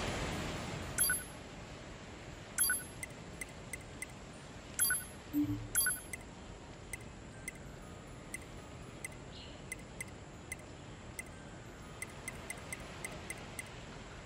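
Short electronic menu blips tick again and again.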